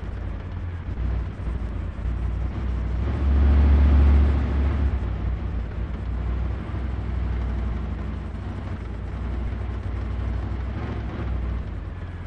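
A heavy tank engine rumbles low and steady, growing louder for a moment before settling.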